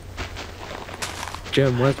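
Blocks of dirt crunch as they are broken.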